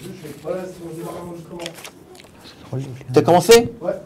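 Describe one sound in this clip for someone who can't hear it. Paper rustles in a man's hands.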